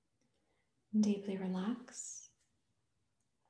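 A woman speaks briefly and softly, close by.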